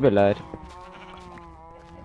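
A pickaxe chips and breaks stone blocks.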